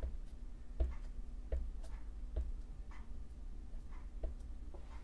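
A stamp block taps and presses down on paper on a table.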